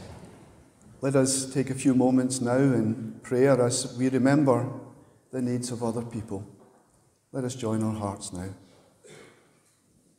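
A middle-aged man speaks calmly through a headset microphone in an echoing hall.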